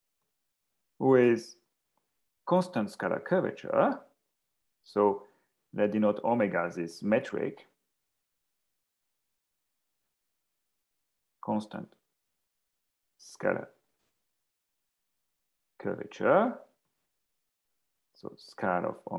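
A young man speaks calmly over an online call, in short phrases with pauses.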